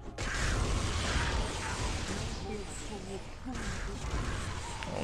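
Video game spell blasts and combat effects crackle and roar.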